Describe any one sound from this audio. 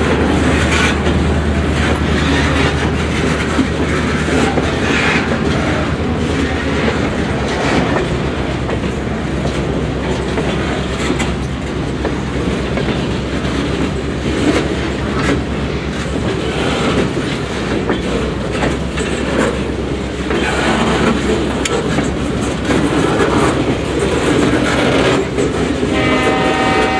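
Steel wheels clack and squeal on the rails.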